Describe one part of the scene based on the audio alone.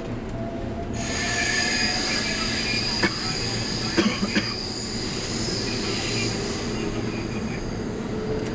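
Another train passes close by with a rushing, screeching sound.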